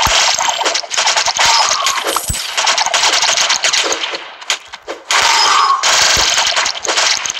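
Rapid electronic shots crackle and pop without pause.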